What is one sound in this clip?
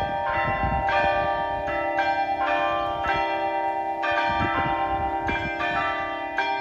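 Church bells ring out in a steady, overlapping peal.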